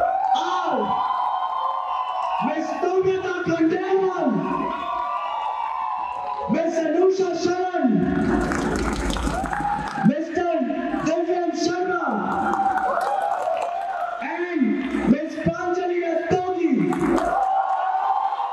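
A young man speaks steadily into a microphone through loudspeakers in an echoing hall.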